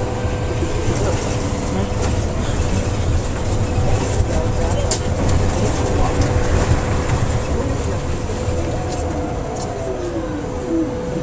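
A bus engine rumbles steadily as the bus drives.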